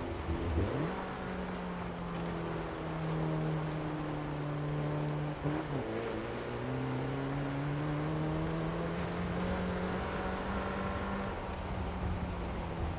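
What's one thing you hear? Tyres roll over a rough road.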